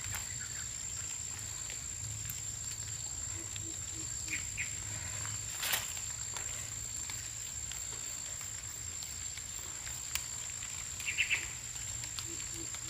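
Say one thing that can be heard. Leaves rustle as hands move through the plants.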